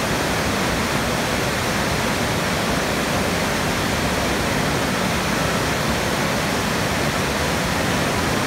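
A mountain stream rushes over rocks.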